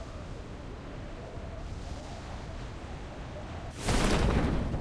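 Wind rushes steadily during a freefall.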